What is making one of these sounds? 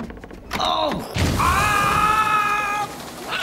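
A cat yowls loudly.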